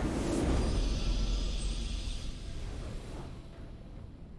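A loud, triumphant game victory sound rings out and then fades away.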